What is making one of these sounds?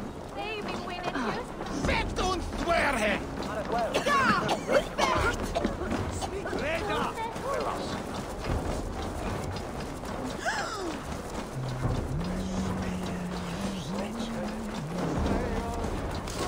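Footsteps thud quickly on wooden boards and then crunch on snowy ground.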